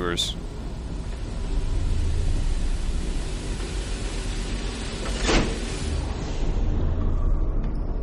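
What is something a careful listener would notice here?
Steam hisses loudly from a vent.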